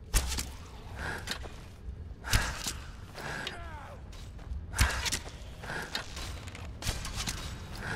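A bowstring twangs as arrows are loosed, again and again.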